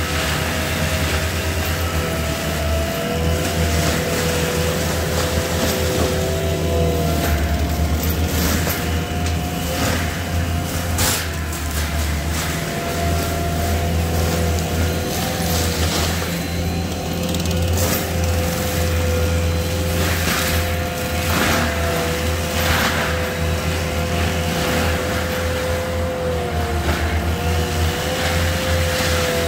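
A tracked loader's diesel engine rumbles and whines steadily nearby.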